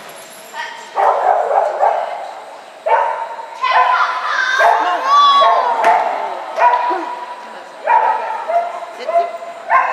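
A woman calls out commands to a dog with animation.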